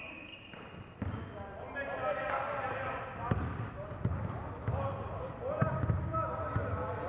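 A basketball bounces on a wooden floor with booming thuds.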